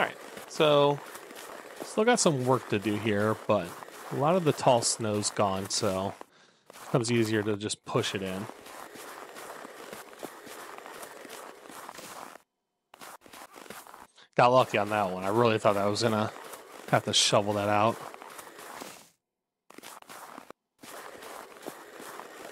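A snow pusher scrapes over snow and gravel.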